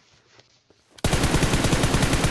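Rapid gunfire crackles loudly from a game.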